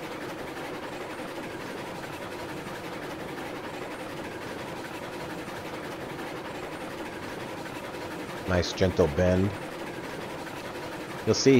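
A small steam locomotive chugs along steadily.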